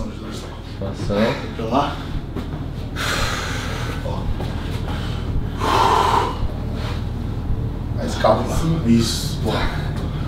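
A man talks casually nearby, with pauses.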